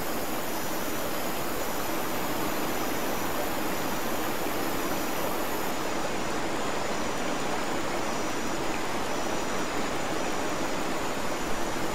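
A fishing reel whirs steadily as its line is wound in.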